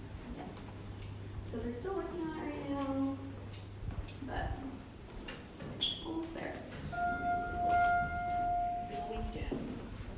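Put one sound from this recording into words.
Footsteps pad along a carpeted floor.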